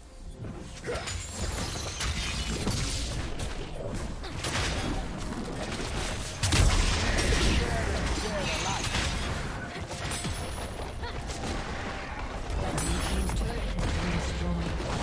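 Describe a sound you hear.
Magic blasts and hits crackle and burst in a video game battle.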